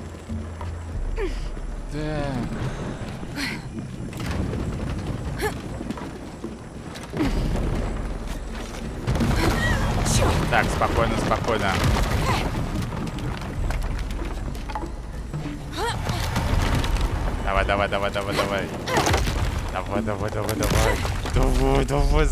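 Game sounds rumble and crash.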